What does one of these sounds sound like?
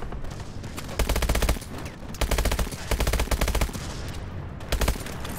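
Rapid bursts of automatic gunfire ring out close by.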